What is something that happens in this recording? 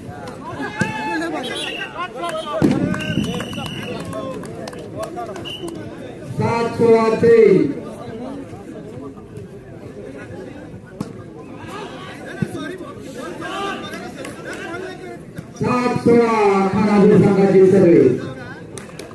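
Men shout and call out loudly outdoors.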